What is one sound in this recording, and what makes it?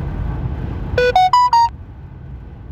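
A phone notification chime plays a quick rising run of notes.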